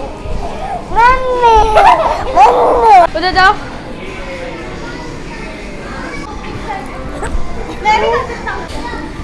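Young children squeal and shout playfully nearby.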